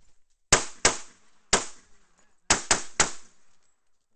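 Pistol shots crack loudly outdoors, one after another.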